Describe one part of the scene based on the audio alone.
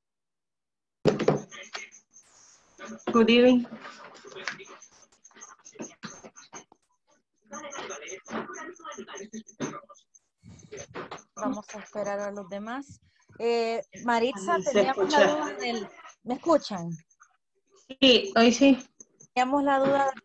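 Women talk over an online call, heard through a small speaker.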